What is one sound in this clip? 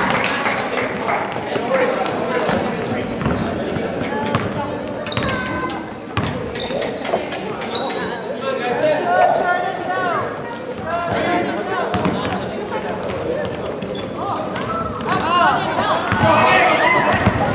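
Players and spectators shout and call out in an echoing hall.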